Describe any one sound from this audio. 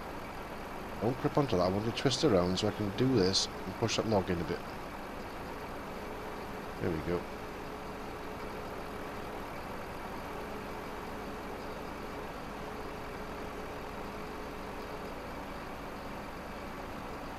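A hydraulic crane arm whines steadily as it swings and lifts.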